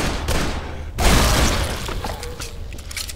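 A pistol fires a loud shot that echoes briefly.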